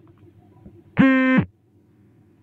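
An electronic alert tone beeps once.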